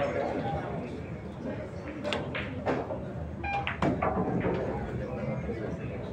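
Pool balls knock together and roll across the table.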